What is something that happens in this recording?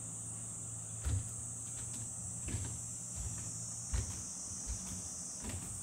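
Bare feet thud softly on a wooden floor as a person walks closer.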